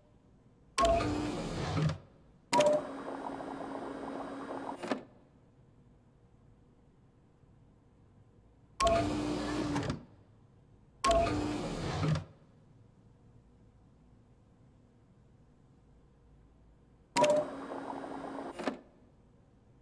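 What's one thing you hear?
Liquid gurgles and pours through a machine in short bursts.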